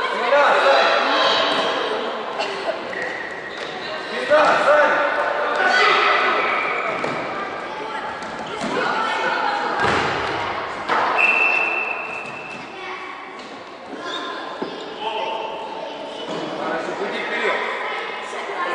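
A ball thuds on a wooden floor.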